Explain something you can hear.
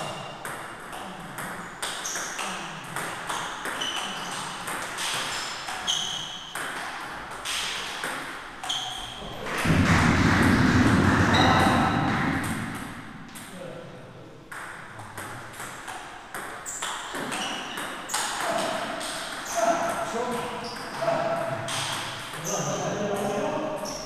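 A table tennis ball clicks sharply back and forth between paddles and table in a quick rally.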